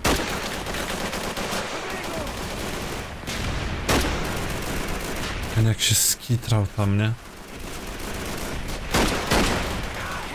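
Rifle shots crack sharply.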